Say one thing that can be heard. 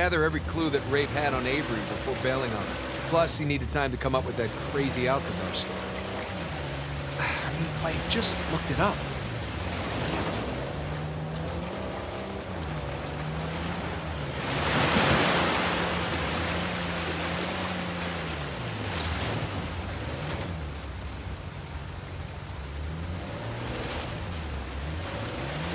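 Water splashes and churns under a jeep's wheels.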